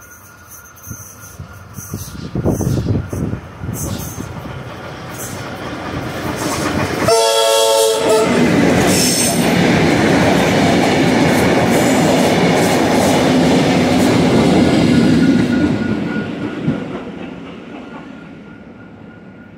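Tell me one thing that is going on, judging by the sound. A train approaches and rumbles loudly past over the rails.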